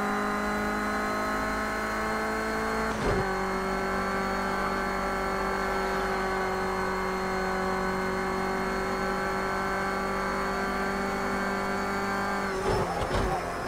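A car engine drones steadily at high revs.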